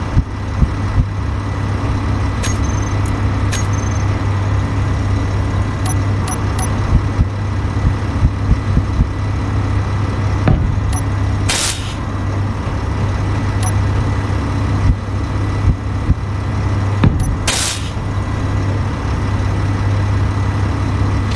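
A low machine hum drones steadily throughout.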